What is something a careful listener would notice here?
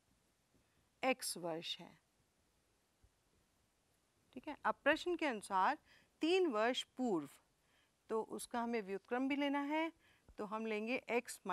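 A woman explains calmly into a close microphone.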